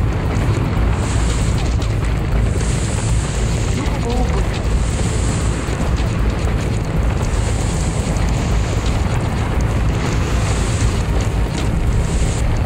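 Coins jingle as they are collected in a game.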